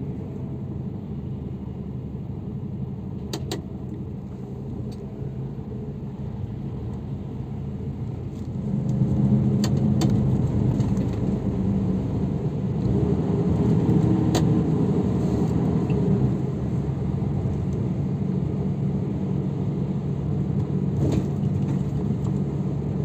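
A bus engine rumbles low and steady, growing louder partway through.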